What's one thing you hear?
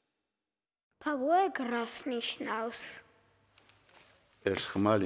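A young boy speaks softly, close by.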